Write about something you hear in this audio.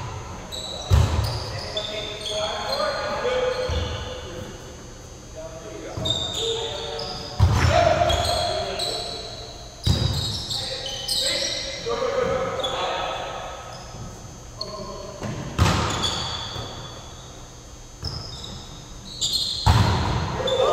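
A volleyball is struck with loud slaps that echo in a large hall.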